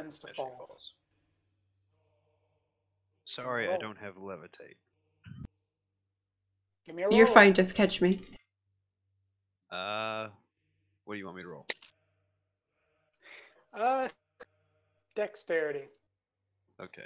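A man talks casually over an online call, in short bursts with pauses.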